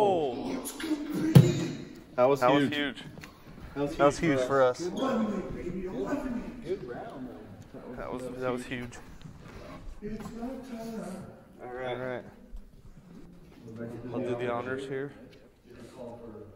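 Men talk and laugh casually nearby in a large echoing gym.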